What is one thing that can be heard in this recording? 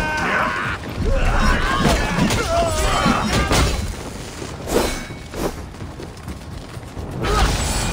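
Blades clash and slash in a fight.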